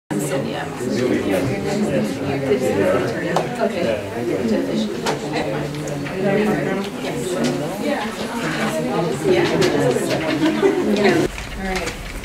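Several people chat at once in a room.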